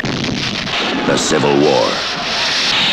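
A crowd of men shouts and yells while charging.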